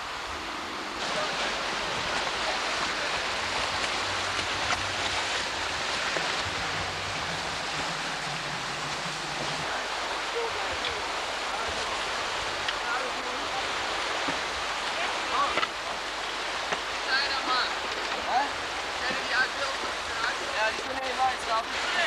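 Water rushes loudly over rapids.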